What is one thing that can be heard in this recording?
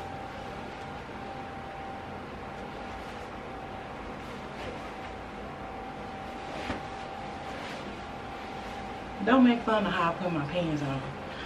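Fabric rustles as a woman pulls on clothing.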